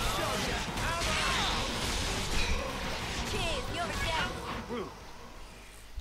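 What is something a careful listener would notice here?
Battle sounds clash rapidly.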